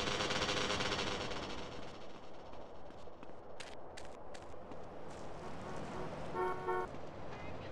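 Footsteps thud on dirt at a quick running pace.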